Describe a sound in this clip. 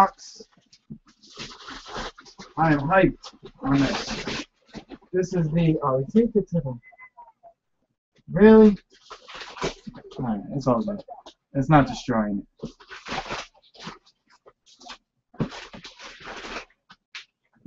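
Cardboard rustles and scrapes as a box is handled.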